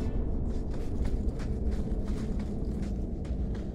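Footsteps crunch steadily on stony ground.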